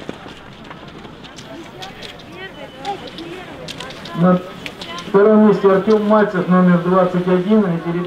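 Cross-country skis glide in classic stride over packed snow.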